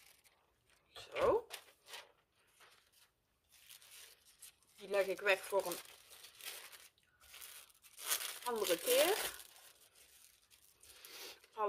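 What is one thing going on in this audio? A plastic sleeve crinkles and rustles.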